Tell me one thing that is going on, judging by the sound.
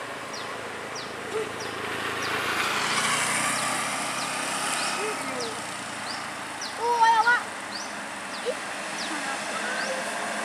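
A motorbike engine approaches and passes on a road.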